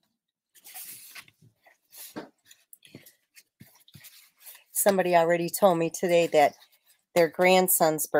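Paper rustles and slides as it is handled and folded.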